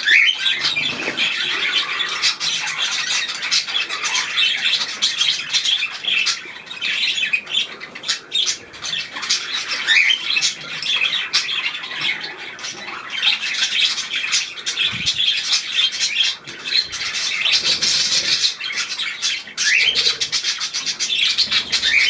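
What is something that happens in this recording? Small birds chirp and twitter rapidly close by.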